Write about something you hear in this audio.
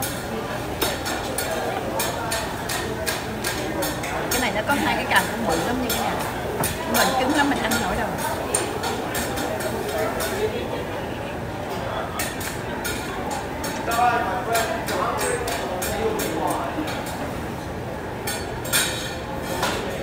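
Chopsticks click against a plate.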